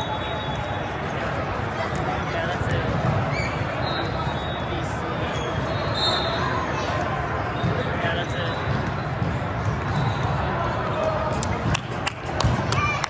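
A crowd chatters steadily throughout a large echoing hall.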